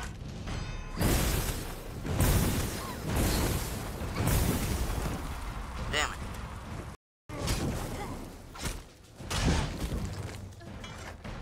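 Blows thud and clash in a fight.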